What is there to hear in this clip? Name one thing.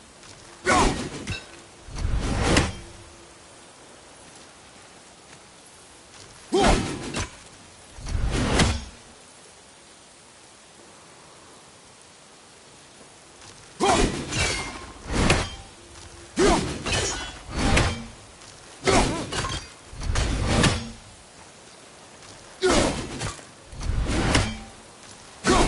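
A heavy axe whooshes through the air and strikes with a loud thud, again and again.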